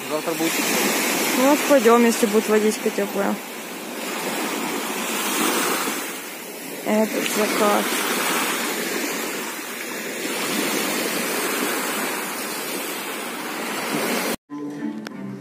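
Waves wash onto a shore.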